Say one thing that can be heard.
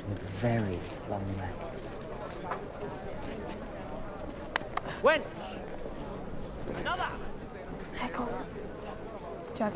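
A crowd murmurs and chatters in a room.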